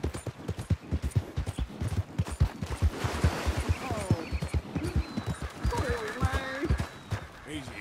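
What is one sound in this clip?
A horse's hooves thud on wet, stony ground.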